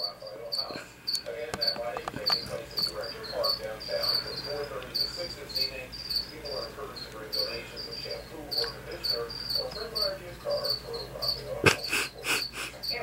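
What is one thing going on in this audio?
Crickets chirp in short, repeated bursts.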